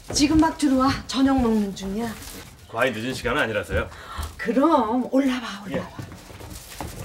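An elderly woman speaks with animation nearby.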